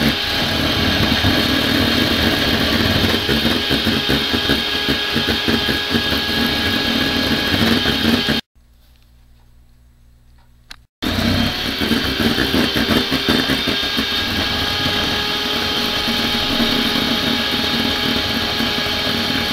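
An electric hand mixer whirs steadily, beating in a metal bowl.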